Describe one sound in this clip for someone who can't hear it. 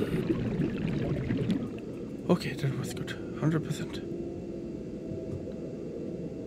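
A small submarine's engine hums low and steady.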